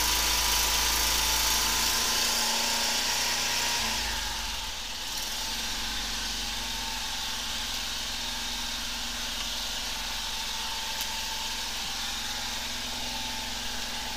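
A steady pump engine hums nearby.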